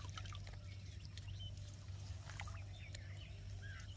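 Water sloshes as a man rinses his hands in shallow water.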